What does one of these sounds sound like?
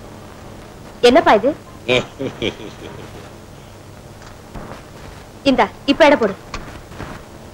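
A young woman speaks softly close by.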